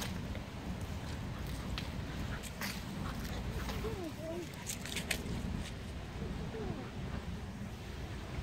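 Dogs growl playfully while wrestling.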